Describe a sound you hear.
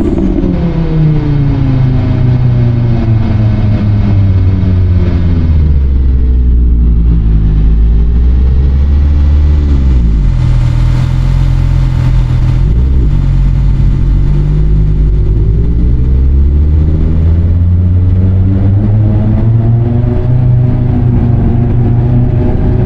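A car engine drones loudly, its pitch dropping as it slows, then rising again as it speeds up.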